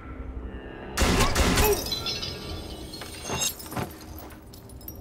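Pistol shots bang out in quick succession.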